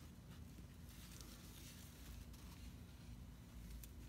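A paper towel swipes across wet paint.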